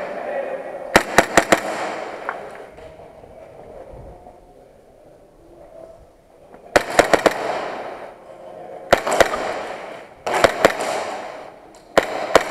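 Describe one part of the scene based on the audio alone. A pistol fires rapid shots that echo through a large hall.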